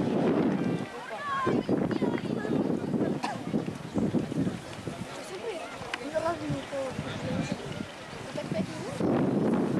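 A crowd of men and women outdoors talk and call out excitedly.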